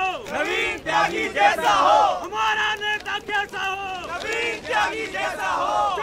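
A crowd of men chants and shouts loudly outdoors.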